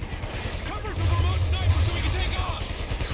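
An explosion booms with a deep rumble.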